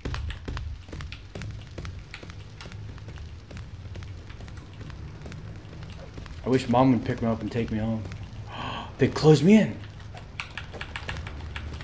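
Footsteps patter quickly on a paved path.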